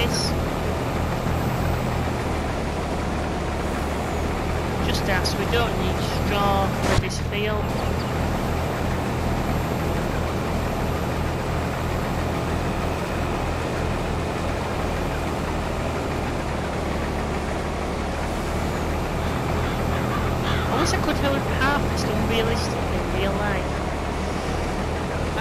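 A combine harvester's engine drones steadily.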